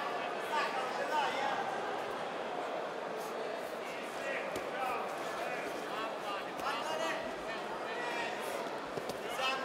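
Bodies thud onto a padded floor.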